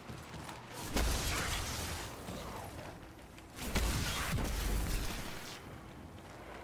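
Crackling blasts and explosions roar.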